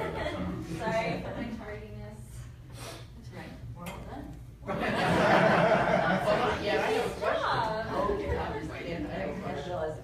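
A woman speaks calmly into a microphone in a room with a slight echo.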